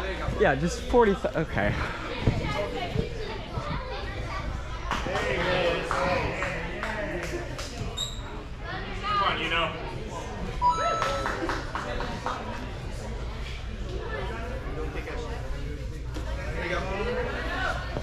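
Voices of children and adults chatter and call out in a large echoing hall.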